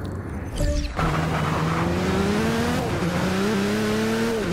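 A race car engine roars and revs up through the gears.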